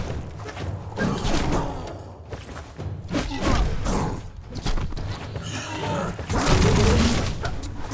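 A large creature growls.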